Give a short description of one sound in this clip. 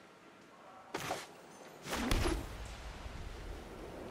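A card game plays a loud magical whoosh as a card lands on the table.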